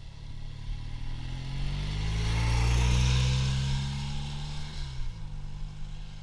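Another motorcycle passes close by with a rising and falling engine roar.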